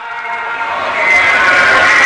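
A motorcycle engine roars past.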